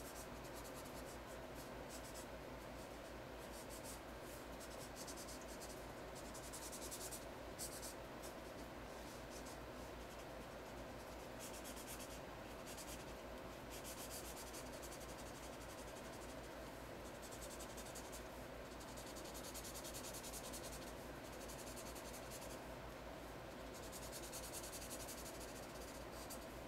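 A felt marker squeaks and scratches across paper in short strokes.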